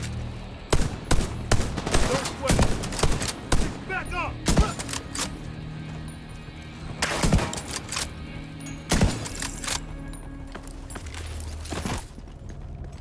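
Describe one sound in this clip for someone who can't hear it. Rifle shots crack loudly, one after another.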